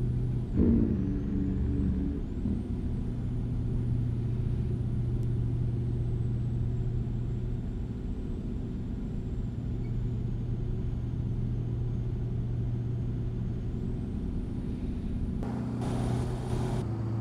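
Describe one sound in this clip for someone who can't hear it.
Tyres hum on a road.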